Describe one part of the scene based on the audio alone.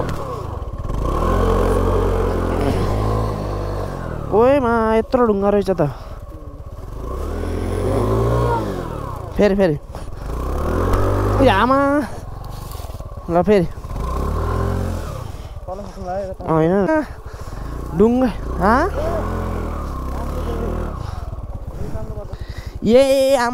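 A scooter engine revs up and down repeatedly.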